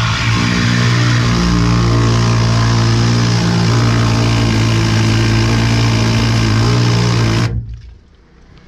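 A high-pressure water jet roars steadily inside a pipe.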